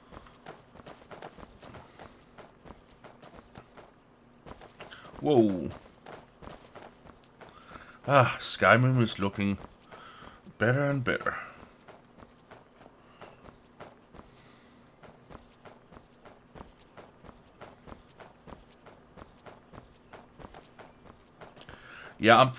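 Light footsteps patter quickly on stony ground.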